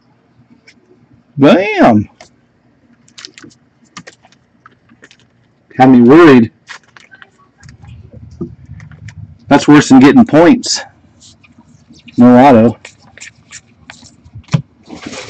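Trading cards rustle and tap softly as hands handle them.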